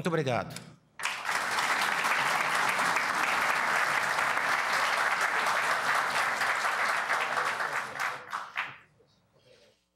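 A crowd applauds loudly, then the applause fades.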